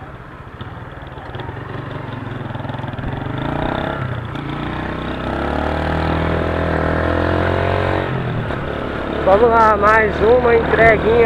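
A motorcycle engine roars and revs up as it rides along.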